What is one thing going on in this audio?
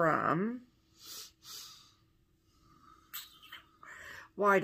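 A woman breathes out loudly, puffing her cheeks.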